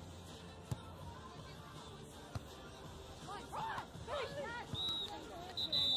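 A volleyball is struck by hand outdoors.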